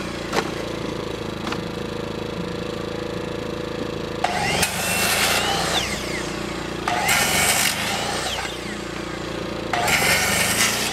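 A generator hums steadily nearby.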